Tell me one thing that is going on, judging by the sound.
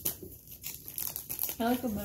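A snack wrapper crinkles.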